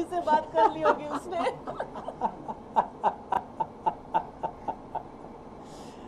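A woman giggles behind her hand.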